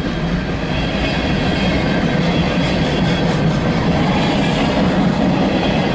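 A freight train rumbles and clatters loudly past close by.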